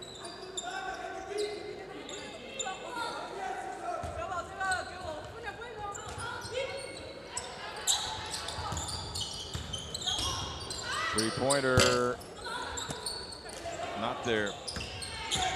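Sneakers squeak on a hard court as basketball players move.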